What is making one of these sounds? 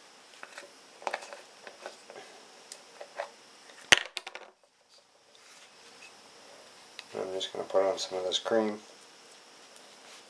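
A plastic jar clicks as fingers handle it.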